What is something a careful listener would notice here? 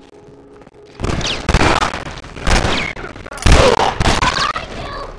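Gunshots ring out in loud bursts.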